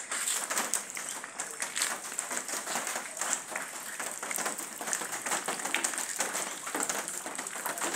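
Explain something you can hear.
Muddy floodwater trickles and laps along a path.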